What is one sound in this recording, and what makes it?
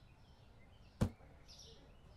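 A single sharp click sounds.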